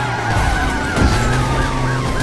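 A truck crashes with a loud bang.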